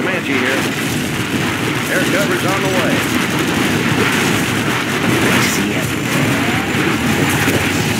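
Guns fire rapidly.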